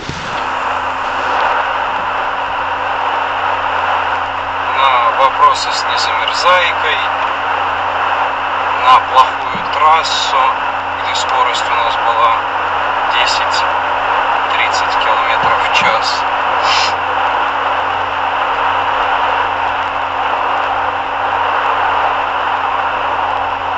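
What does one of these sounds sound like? Tyres roar steadily on a snowy road.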